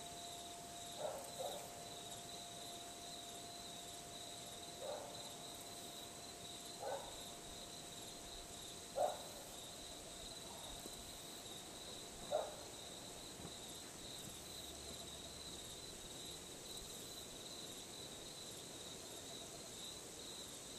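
Metal wind chimes ring now and then, with a soft lingering tone.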